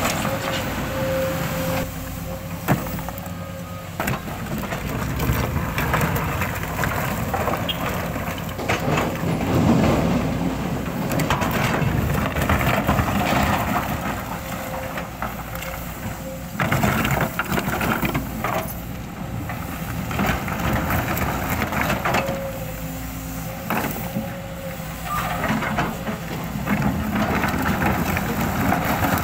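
A diesel hydraulic excavator engine rumbles under load.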